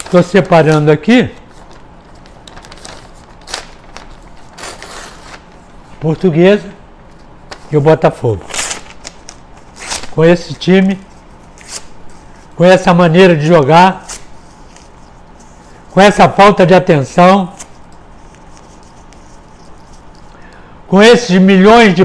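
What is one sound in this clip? Paper rustles and crinkles in a man's hands.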